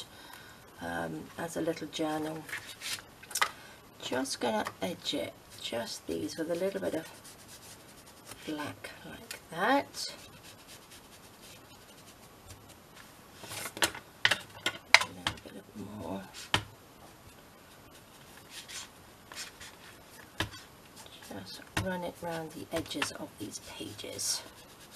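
Paper pages rustle and flutter as a hand riffles through them.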